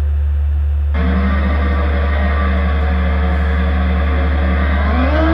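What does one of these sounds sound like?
Racing car engines idle with a steady hum and then rev up.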